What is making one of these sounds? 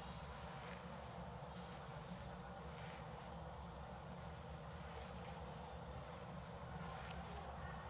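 A tool scrapes softly across bare skin.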